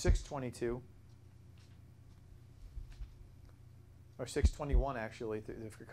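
A man reads aloud calmly through a clip-on microphone, with pauses.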